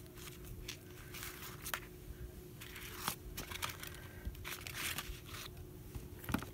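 A sheet of paper rustles and crinkles as a hand peels and lifts it.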